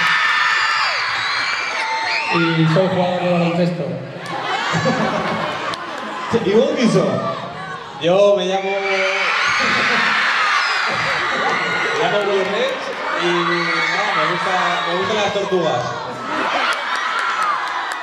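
A crowd of young people screams and cheers loudly in a large echoing hall.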